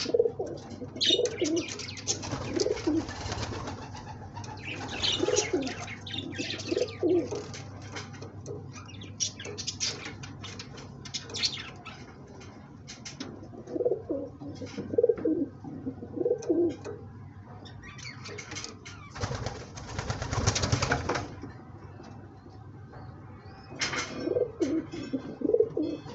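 A pigeon coos in low, rolling calls close by.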